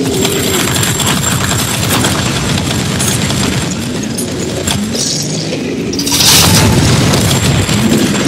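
Energy weapons fire with sharp blasts.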